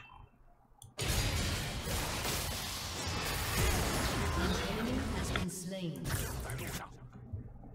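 Magic spells whoosh and crackle during a video game fight.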